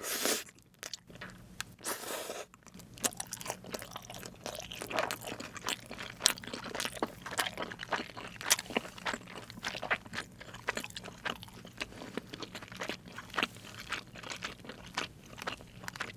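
A young woman chews crunchy fried food close to a microphone, with loud crisp crackles.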